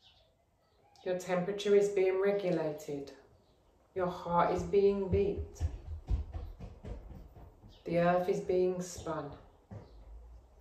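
A woman speaks calmly and slowly, close by, in short phrases with pauses.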